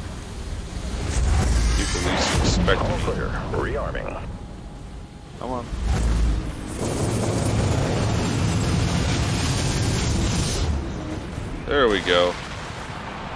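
Heavy cannons fire with deep booms and explosions.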